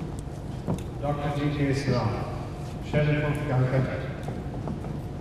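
A man speaks through a loudspeaker.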